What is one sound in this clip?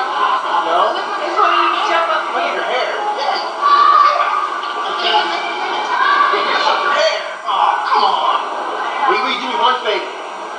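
A young woman talks and laughs excitedly close by.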